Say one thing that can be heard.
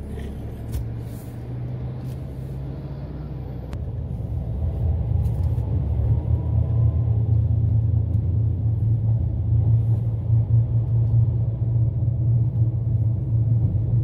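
A car engine hums steadily from inside the vehicle, growing louder as it speeds up.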